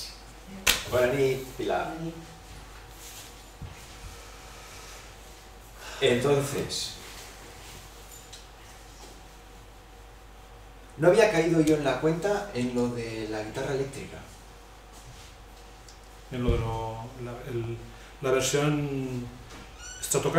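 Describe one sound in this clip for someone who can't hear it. A middle-aged man speaks into a microphone in bursts, with pauses between phrases.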